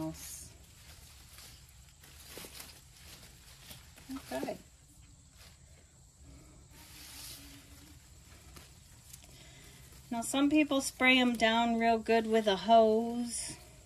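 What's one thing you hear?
Leaves rustle as a houseplant is handled.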